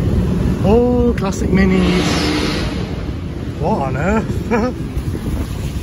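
A tuned car engine revs up and down.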